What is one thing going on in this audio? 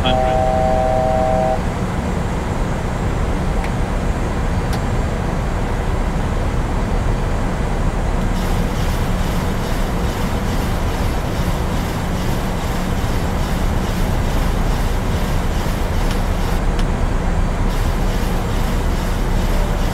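Jet engines drone steadily with a low rushing roar of air.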